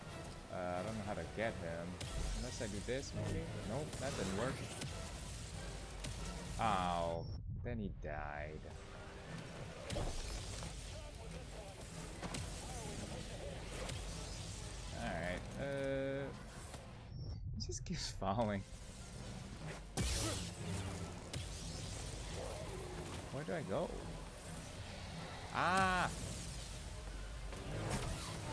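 A lightsaber hums and swishes as it swings.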